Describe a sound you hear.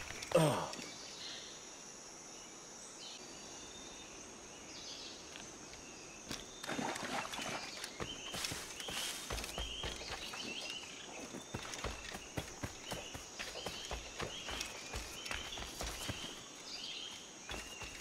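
Leaves and branches rustle as someone pushes through plants.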